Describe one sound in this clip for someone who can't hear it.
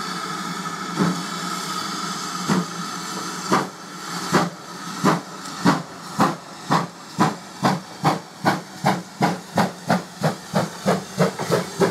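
A steam locomotive chuffs in loud, quickening bursts as it pulls away.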